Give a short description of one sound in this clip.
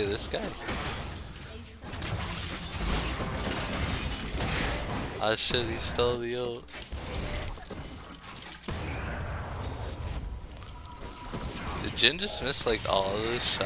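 Spell effects whoosh and crackle during a fight.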